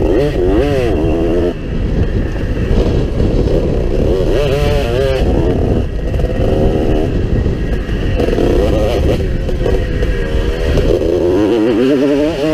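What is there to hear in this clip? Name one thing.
A motorbike engine revs loudly up close, rising and falling in pitch.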